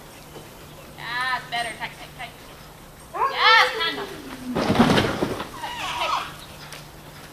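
A woman calls out to a dog and praises it excitedly.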